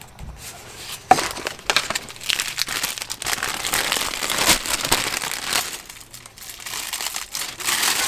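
A plastic bag rustles as it is opened.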